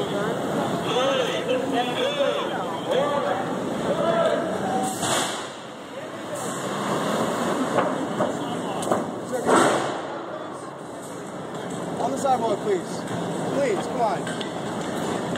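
Street traffic hums in the background.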